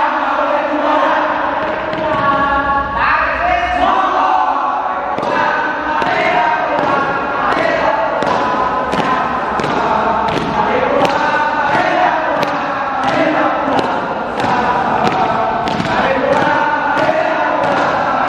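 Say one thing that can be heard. A group of young people sings together loudly in an echoing hall.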